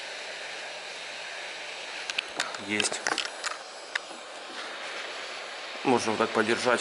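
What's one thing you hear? A heat gun blows hot air with a steady hiss and hum.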